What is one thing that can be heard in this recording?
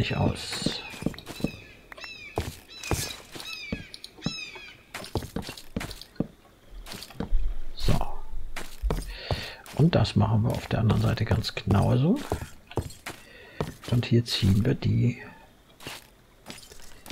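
Wooden blocks knock and crack as they break.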